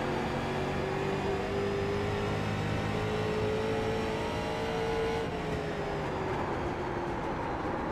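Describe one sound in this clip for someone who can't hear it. A racing car engine roars at high revs, its pitch rising, then dropping as it slows into a turn.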